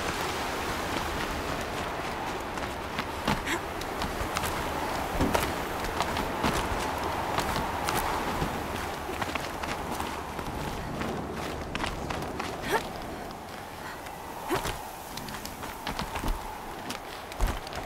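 Footsteps scrape and crunch on rock.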